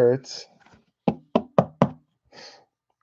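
A card clicks and scrapes as it is pushed into a hard plastic holder.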